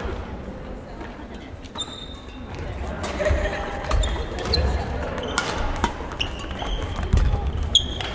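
Badminton rackets strike shuttlecocks with sharp pops in a large echoing hall.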